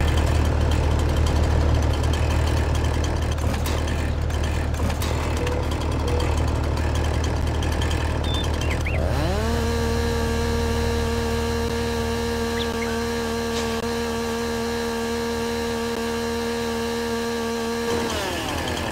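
A chainsaw engine idles with a low, rough rumble.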